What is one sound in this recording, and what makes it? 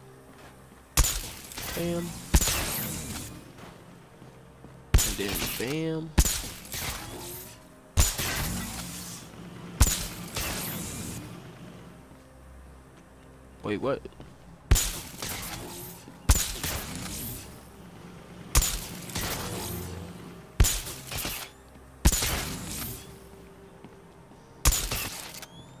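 Electric blasts crackle and explode again and again.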